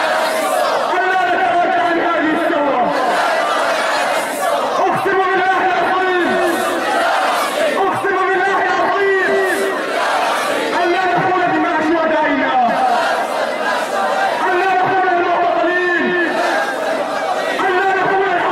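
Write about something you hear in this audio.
A large crowd of young men chants loudly in unison outdoors.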